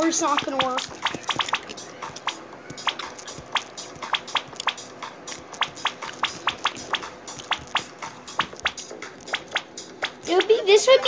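Short electronic clicks from a mobile game tick in quick succession.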